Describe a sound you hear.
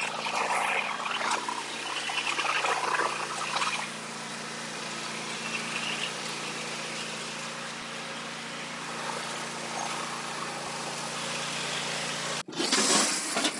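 A riding lawn mower engine idles steadily and then cuts out.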